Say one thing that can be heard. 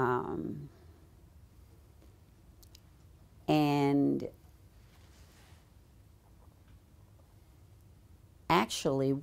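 An elderly woman speaks calmly, close to a microphone.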